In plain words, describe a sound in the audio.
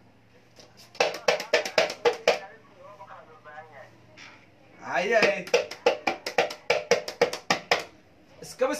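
Rapid knocks tap on a hard shell.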